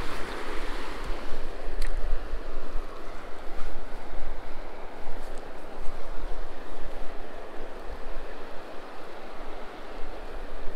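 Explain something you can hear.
Wind blusters across an outdoor microphone.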